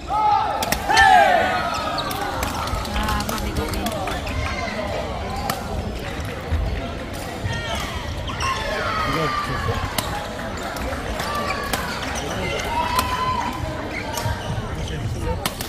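Many people chatter and call out in a large echoing hall.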